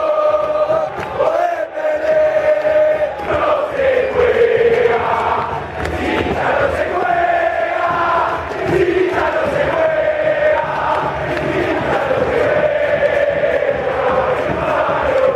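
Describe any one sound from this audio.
A large crowd of fans sings and chants loudly together outdoors.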